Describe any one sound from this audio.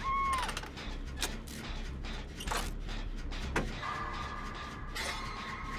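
Metal parts of a generator clank and rattle.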